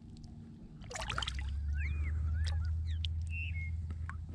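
Water splashes as a fish is let go close by.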